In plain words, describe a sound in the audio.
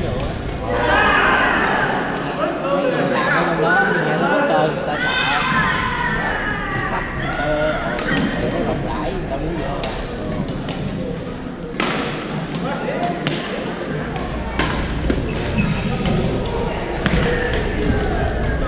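Young men talk and call out across a large echoing hall.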